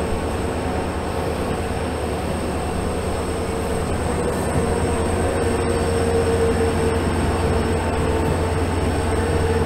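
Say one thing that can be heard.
A diesel locomotive engine rumbles steadily up close.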